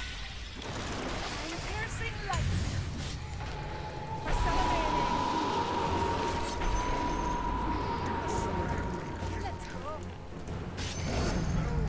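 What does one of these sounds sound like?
Game sound effects of spells and blows clash and whoosh.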